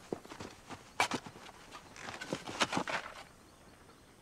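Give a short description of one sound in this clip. A shovel scrapes and digs into soil.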